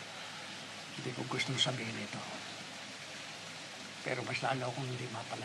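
An elderly man speaks in a low, sorrowful voice, close by.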